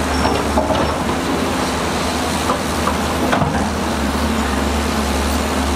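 An excavator engine drones.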